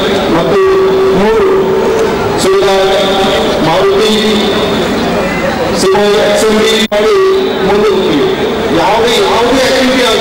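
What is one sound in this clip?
A man speaks loudly through a microphone with an echoing public-address sound.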